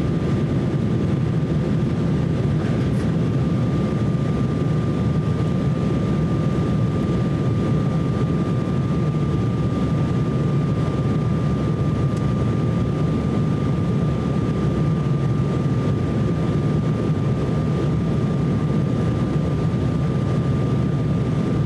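The twin turbofan engines of an Embraer 170 regional jet roar steadily, heard from inside the cabin in flight.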